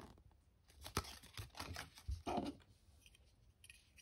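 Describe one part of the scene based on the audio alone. A plastic capsule clicks open.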